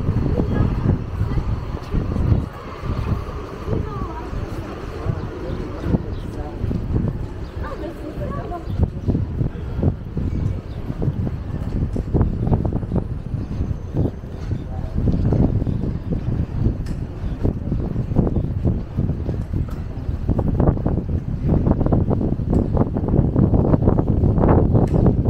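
Footsteps walk steadily on pavement.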